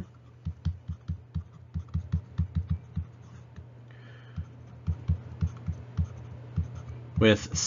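A pen taps and scratches on a tablet.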